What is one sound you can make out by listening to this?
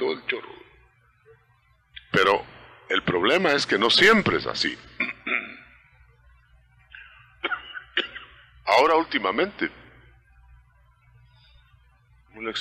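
A man preaches with animation into a microphone.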